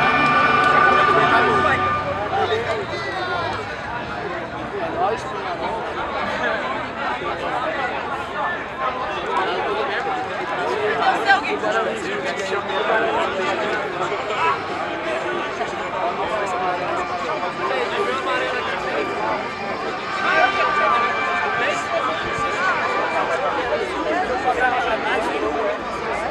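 A crowd of young men and women chatter and call out nearby, outdoors.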